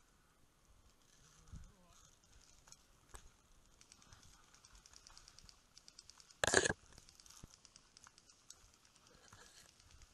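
Dry bracken rustles and crackles as someone pushes through it.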